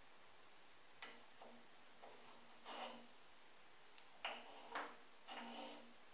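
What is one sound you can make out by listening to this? A metal pin clicks and scrapes as it slides into a fence clamp.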